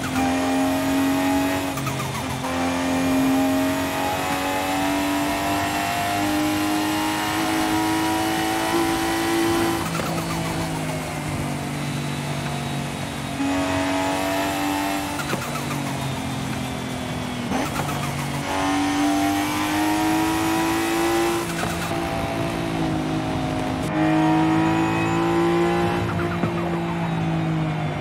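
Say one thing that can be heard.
A car engine revs high, rising in pitch and dropping at each gear change.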